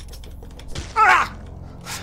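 A blade hacks into flesh with a wet splatter.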